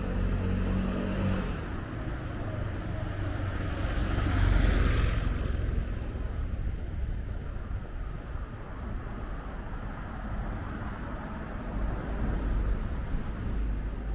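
Footsteps tread on a paved pavement outdoors.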